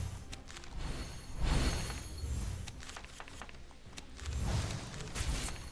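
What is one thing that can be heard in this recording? Magic spell effects whoosh and shimmer in bursts.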